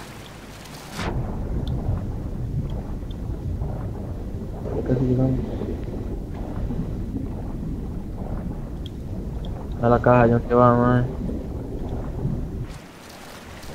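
A low, muffled rumble sounds as a swimmer moves underwater.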